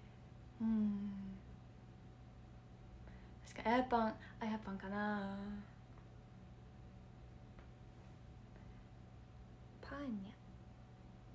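A young woman speaks softly and cheerfully close to a microphone.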